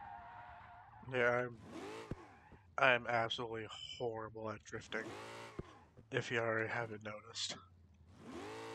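Tyres screech in bursts as a car slides.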